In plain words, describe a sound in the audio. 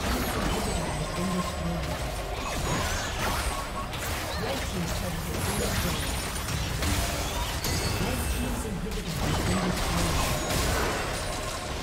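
Game towers and buildings crumble with heavy blasts.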